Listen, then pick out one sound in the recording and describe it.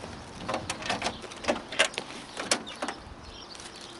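A vehicle door handle clicks and rattles.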